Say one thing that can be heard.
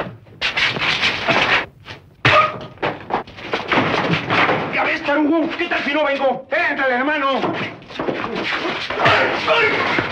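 Fists thump and bodies scuffle in a brawl.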